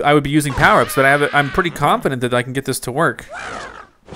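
A cartoon bird squawks as it flies through the air.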